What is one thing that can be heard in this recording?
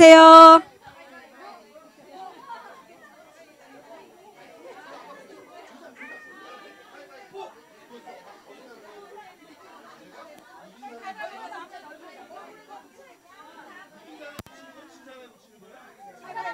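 A crowd of women chatters faintly.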